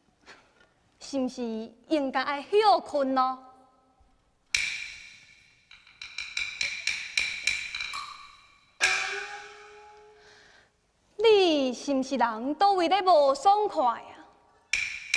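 A young woman sings in a high, wavering opera voice.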